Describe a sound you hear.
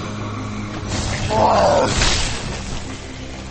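Blows strike a body with wet, heavy thuds.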